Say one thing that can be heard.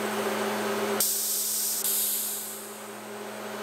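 A machine blade cuts into wood with a loud hiss.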